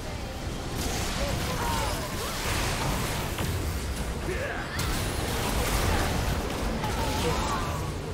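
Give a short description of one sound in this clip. Magic spells and attacks crackle and whoosh in a fast-paced battle.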